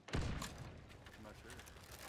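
A gunshot bangs loudly close by.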